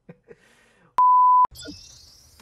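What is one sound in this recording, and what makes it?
A steady high test tone beeps briefly.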